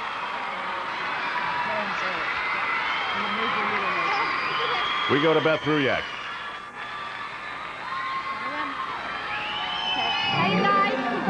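A large crowd cheers and applauds in a big echoing arena.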